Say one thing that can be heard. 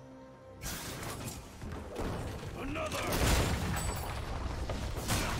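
Video game combat sound effects clash and burst.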